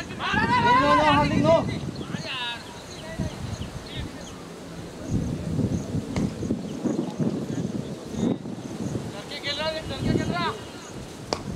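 Men call out across an open field in the distance.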